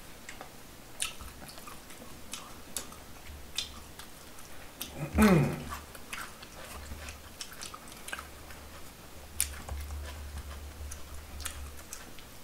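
Utensils clink against dishes.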